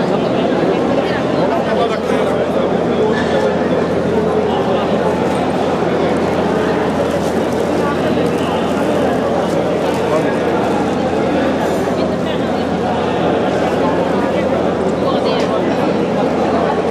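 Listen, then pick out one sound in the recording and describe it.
A crowd of men and women chatter close by in a busy, echoing room.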